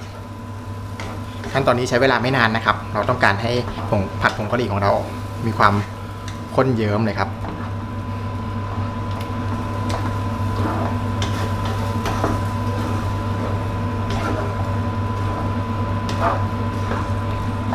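A wooden spatula stirs through thick sauce in a pan.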